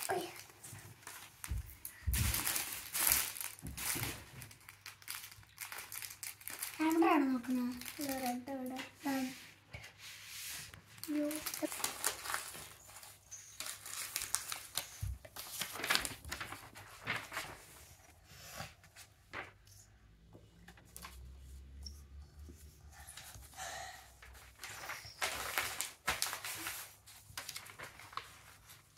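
Paper rustles and crinkles as a child handles it.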